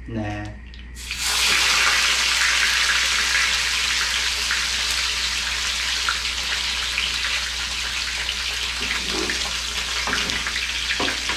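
A fish fillet sizzles loudly in hot oil.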